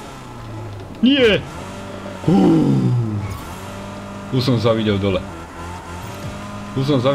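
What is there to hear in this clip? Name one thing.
A man talks with animation into a close microphone.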